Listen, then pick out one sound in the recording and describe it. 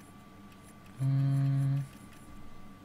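A short electronic beep sounds.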